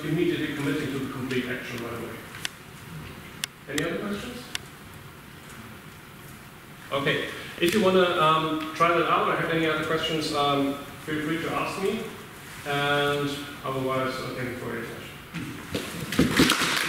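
A man speaks calmly and clearly in a large echoing hall.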